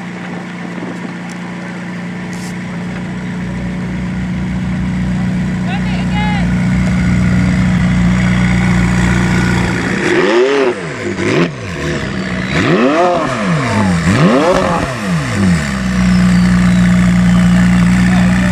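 A sports car engine idles with a deep steady rumble.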